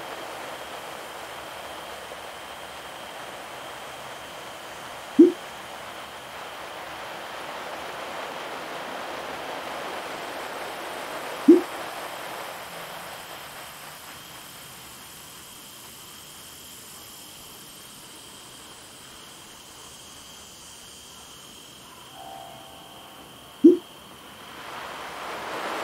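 An indoor bike trainer whirs steadily.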